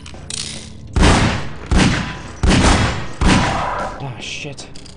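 Gunshots ring out loudly, echoing down a corridor.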